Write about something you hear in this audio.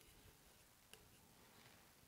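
A blade scrapes softly across a hard surface.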